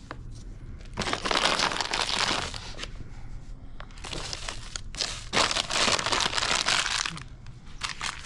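Flour pours from a paper bag with a soft rushing hiss.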